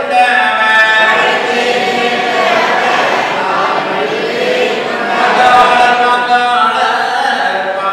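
A group of men chant a prayer together in an echoing hall.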